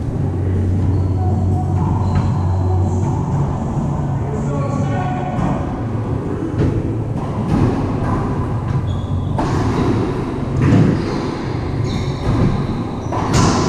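A ball smacks against walls and rackets in a large echoing court.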